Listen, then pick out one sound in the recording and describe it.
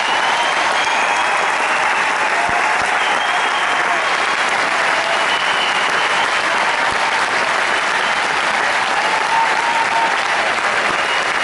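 A large crowd applauds loudly and steadily in a big echoing hall.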